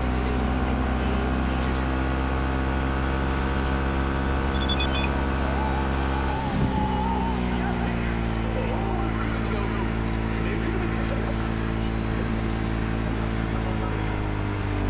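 A motorcycle engine hums steadily as it rides along.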